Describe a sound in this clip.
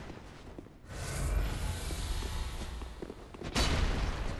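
A fire spell roars and bursts.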